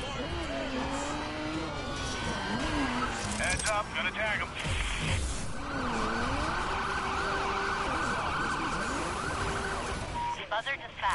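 A car engine roars and revs loudly.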